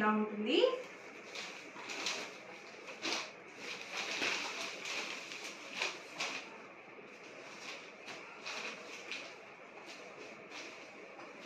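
Cloth rustles and swishes as fabric is unfolded and handled.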